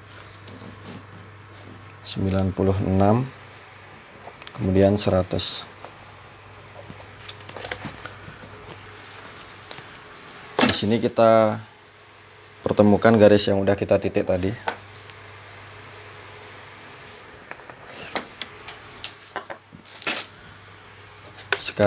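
A cloth tape measure rustles as it is handled.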